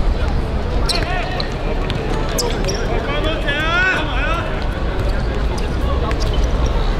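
A football is kicked on a hard court.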